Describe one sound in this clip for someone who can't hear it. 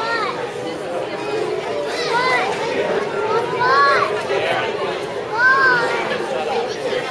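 A large choir of young children sings together in a hall.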